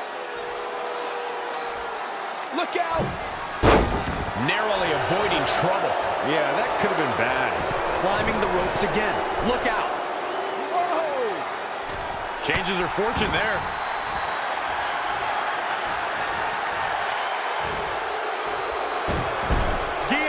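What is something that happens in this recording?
A large crowd roars and cheers steadily.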